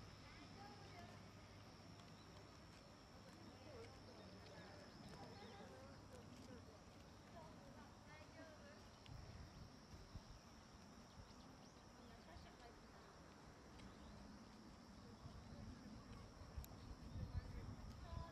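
Elderly women chat quietly at a distance outdoors.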